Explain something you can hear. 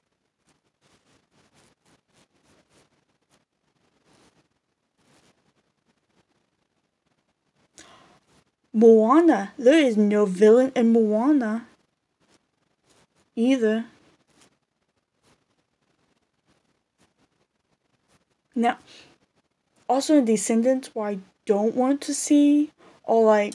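Metal rings clink softly as they are handled.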